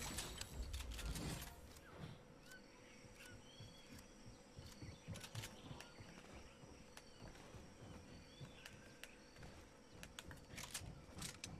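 Footsteps patter steadily on a hard surface.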